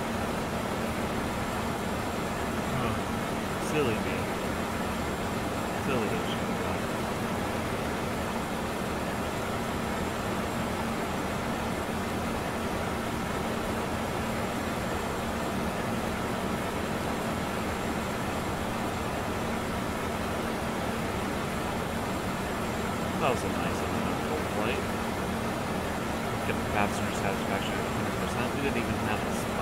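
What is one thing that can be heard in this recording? A jet engine hums steadily.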